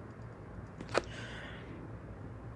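A woman sniffs close by.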